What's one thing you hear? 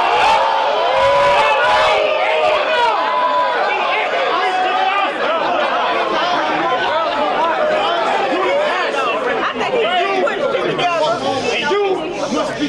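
A crowd of young men chatters and shouts loudly.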